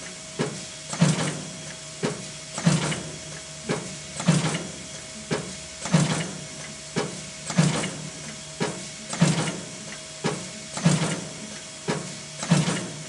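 An automated sewing machine clatters and thumps in a steady repeating cycle.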